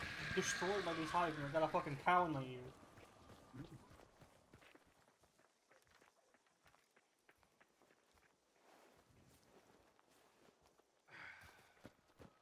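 Footsteps crunch through grass and dry twigs.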